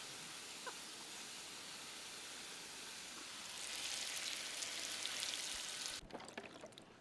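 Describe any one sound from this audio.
Water sprays in a steady hiss.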